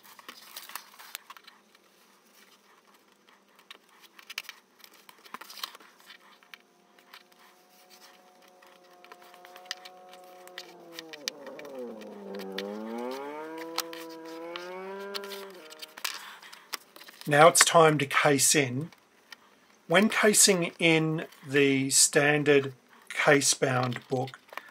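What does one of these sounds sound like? Paper rustles as it is folded and handled.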